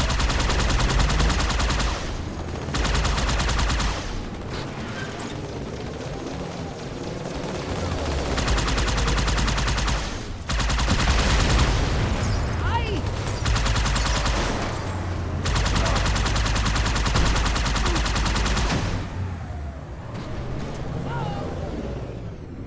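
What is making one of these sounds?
A hovering vehicle's engine hums steadily.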